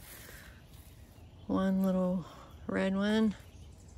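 Leaves rustle as a hand pulls a tomato off a plant.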